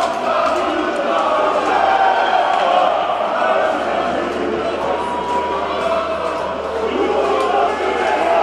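A crowd cheers and chants in a large echoing arena.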